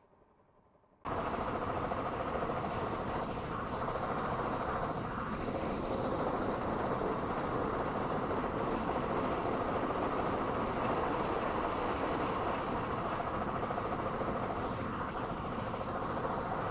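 A train rattles loudly along the track, heard from close by on board.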